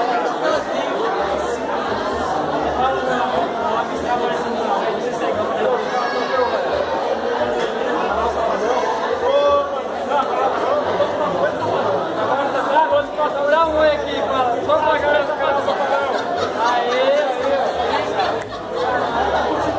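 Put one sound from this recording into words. A teenage boy answers loudly and cheerfully.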